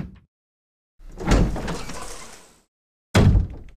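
A heavy wooden door creaks open slowly.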